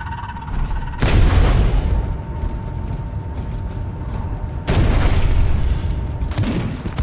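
Loud explosions boom and rumble.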